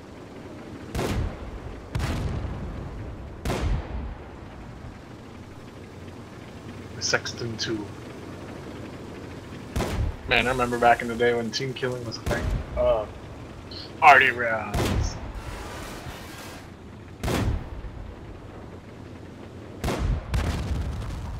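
Tank cannons fire in loud, booming blasts.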